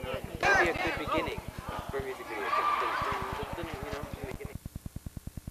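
Young men talk and shout with animation outdoors.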